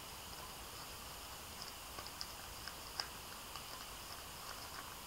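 Rice paper crinkles and rustles softly as it is folded by hand.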